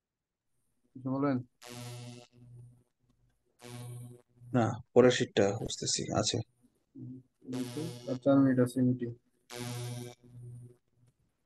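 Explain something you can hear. A man speaks calmly, heard through an online call.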